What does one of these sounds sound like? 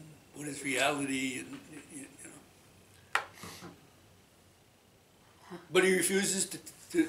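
An elderly man speaks calmly and conversationally, close to a microphone.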